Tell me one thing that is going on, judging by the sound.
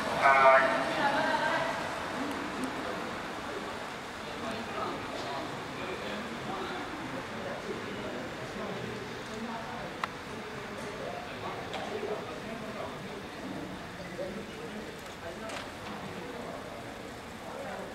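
Racing bicycles whir along a track.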